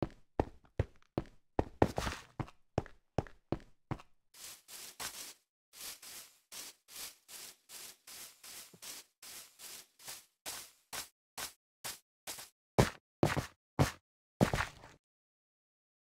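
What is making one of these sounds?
Footsteps tap along at a steady walking pace.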